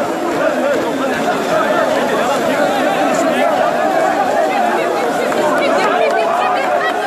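A large crowd chants and shouts loudly outdoors.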